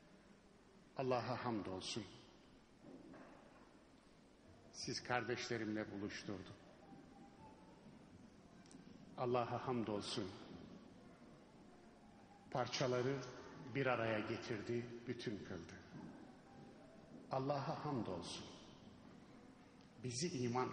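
A middle-aged man speaks into a microphone in bursts, with pauses, his voice carrying through a loudspeaker in a large echoing hall.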